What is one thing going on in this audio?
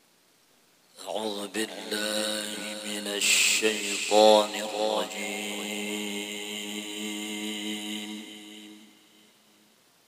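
A man chants melodically into a microphone.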